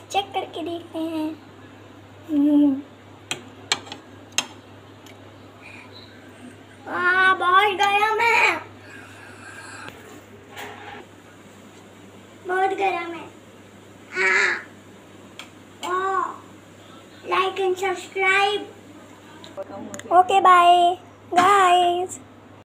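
A young girl talks and giggles close by.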